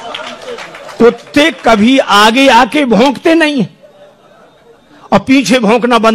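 A man speaks loudly and emphatically through a microphone and loudspeakers.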